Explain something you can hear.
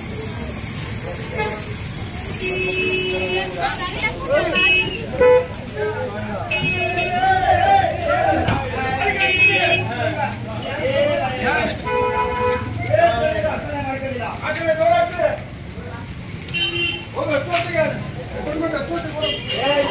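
A bus engine rumbles at idle.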